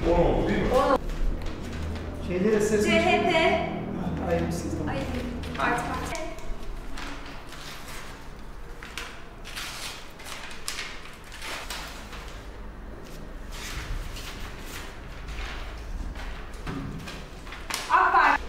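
Paper ballots rustle as they are handled.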